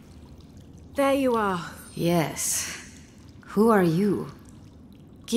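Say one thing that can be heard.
A young woman answers hesitantly.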